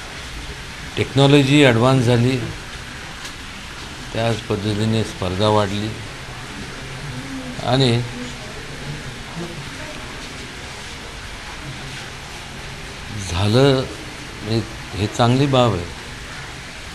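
A middle-aged man speaks calmly into microphones close by, with pauses.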